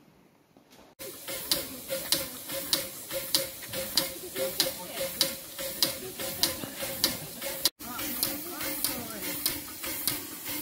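Steam hisses from a locomotive.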